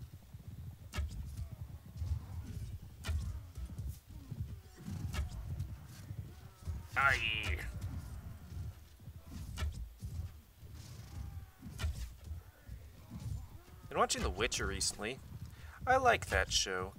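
Arrows are loosed from a bow with sharp snaps.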